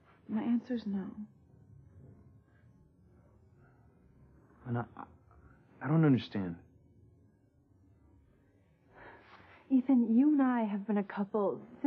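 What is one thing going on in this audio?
A young woman speaks tensely up close.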